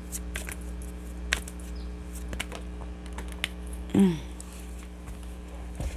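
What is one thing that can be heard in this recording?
Cards shuffle and flick softly in a person's hands.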